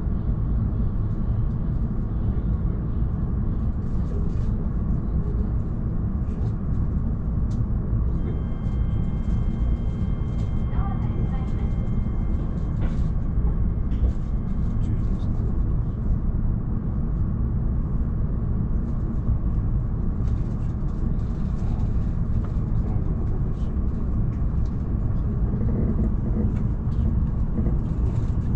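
A train hums and rumbles steadily from inside the carriage.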